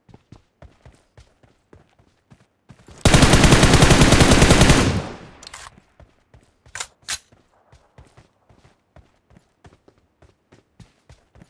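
Footsteps thud quickly on the ground.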